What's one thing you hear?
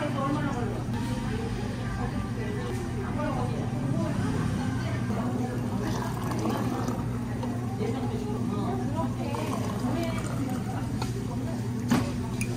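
Liquid pours into a mug.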